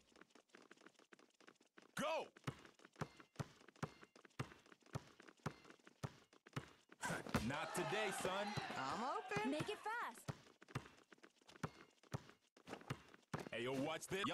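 A basketball bounces steadily on a hard court.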